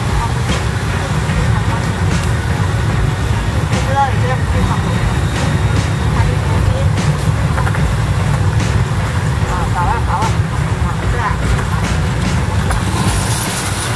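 Scooters pass by on a street.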